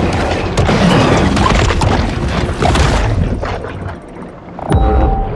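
Water rumbles and swirls in a muffled underwater wash.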